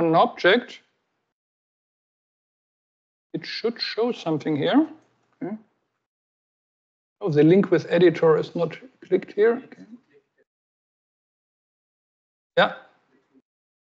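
A woman speaks calmly through a microphone, pausing between phrases.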